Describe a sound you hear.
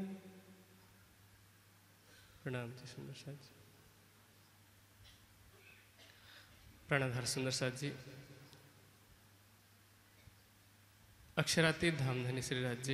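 A young man chants in a slow, sung voice through a microphone, in phrases with long pauses between them.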